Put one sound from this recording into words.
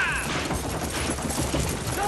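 Horses gallop, hooves pounding on dirt.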